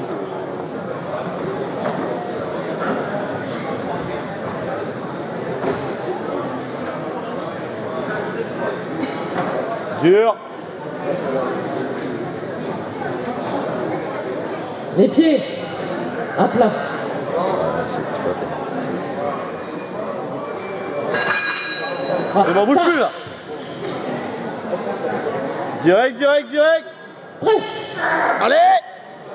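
A crowd of spectators chatters and murmurs in a large echoing hall.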